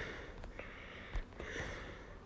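Phone keyboard keys tick softly as a word is typed.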